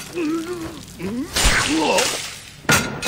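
A monster snarls and roars.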